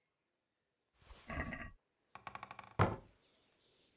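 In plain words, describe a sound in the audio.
A heavy wooden chest lid creaks and thuds shut.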